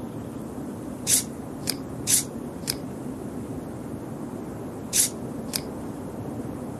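Puzzle pieces swish and click softly as they slide into place.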